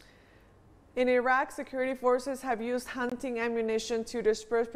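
A woman speaks calmly into a close microphone.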